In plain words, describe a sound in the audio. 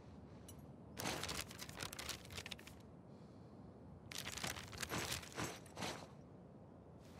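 A paper map rustles and crinkles in someone's hands.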